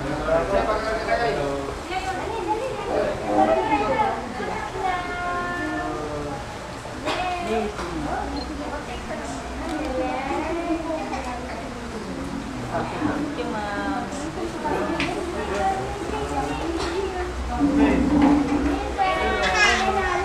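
Several people talk nearby.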